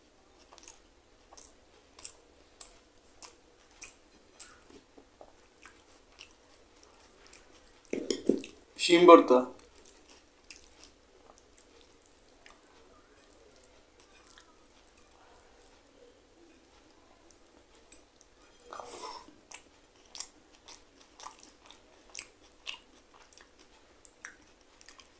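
Fingers squish and mix soft rice close by.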